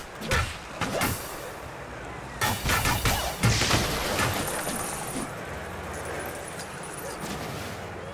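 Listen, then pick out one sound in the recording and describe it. Cartoon blasts and zaps ring out during a fight.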